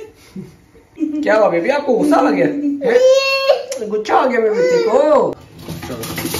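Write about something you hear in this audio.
A toddler babbles and whines close by.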